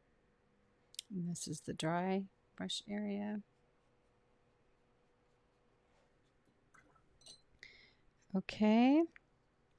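A woman speaks calmly and warmly into a microphone.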